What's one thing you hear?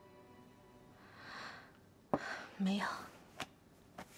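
A young woman speaks quietly.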